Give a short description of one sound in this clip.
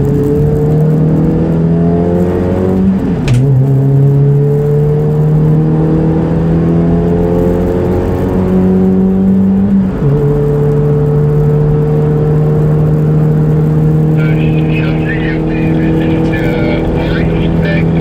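A four-cylinder racing car engine accelerates hard, heard from inside the cabin.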